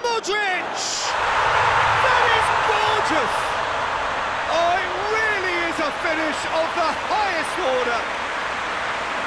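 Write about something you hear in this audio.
A large stadium crowd bursts into loud cheering, then settles back to a steady roar.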